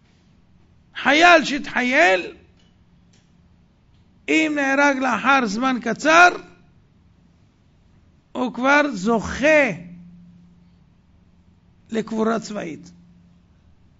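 A middle-aged man speaks expressively into microphones in short bursts with pauses.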